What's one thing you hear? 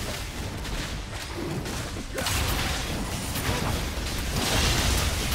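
Fantasy battle effects crackle, whoosh and thud as a fight rages.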